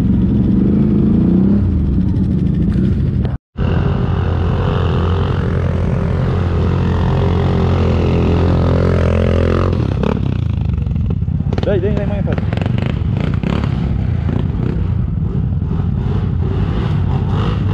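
A quad bike engine rumbles and revs close by.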